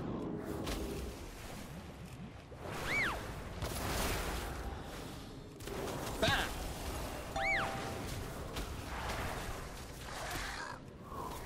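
Game spell effects whoosh and burst repeatedly.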